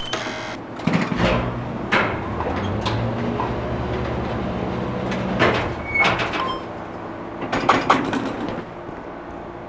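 An elevator hums steadily as it travels.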